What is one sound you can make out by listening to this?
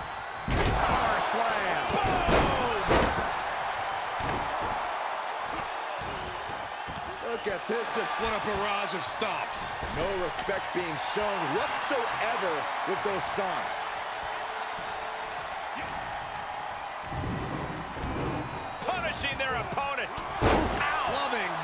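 Heavy bodies thud hard onto a wrestling ring mat.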